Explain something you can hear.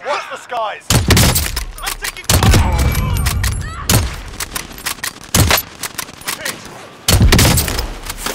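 A sniper rifle fires loud, booming shots with a short echo.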